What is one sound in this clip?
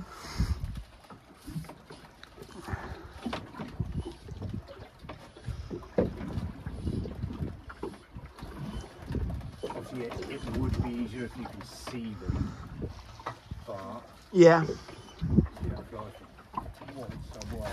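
An adult man talks nearby, outdoors in wind.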